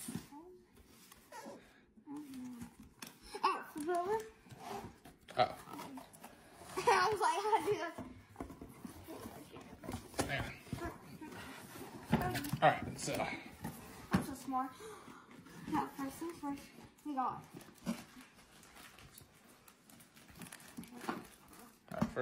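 Cardboard packaging rustles and scrapes as a box is handled.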